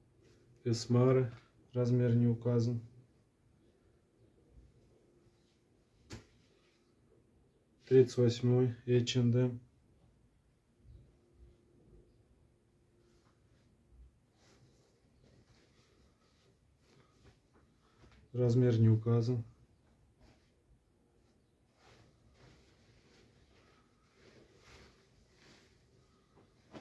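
Fabric rustles softly as clothes are smoothed and laid flat.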